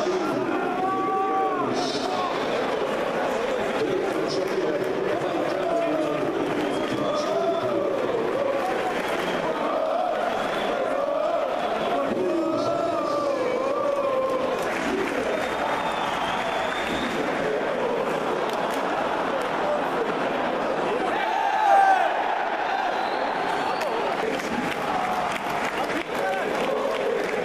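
A large crowd sings and chants loudly in a big open stadium.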